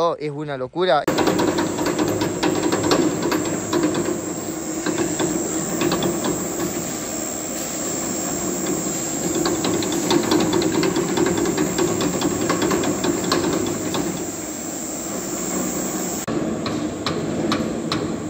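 A spinning machine rattles and hums steadily.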